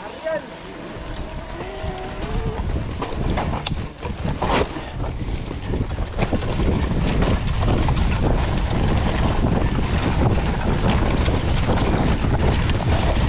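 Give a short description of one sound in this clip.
Bicycle tyres crunch and rattle over rocks and dry leaves.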